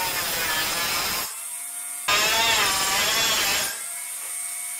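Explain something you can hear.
An angle grinder whines and grinds in short bursts.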